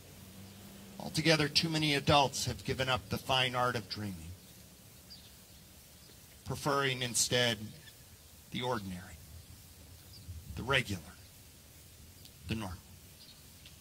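A middle-aged man speaks with animation through a microphone, outdoors.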